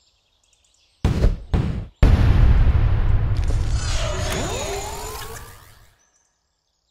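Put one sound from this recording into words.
A video game plays a loud booming sting.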